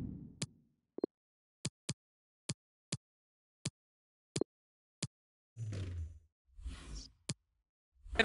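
Short menu clicks sound one after another.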